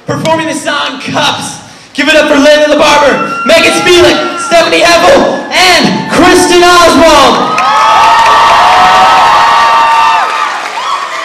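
A young man sings loudly through a microphone.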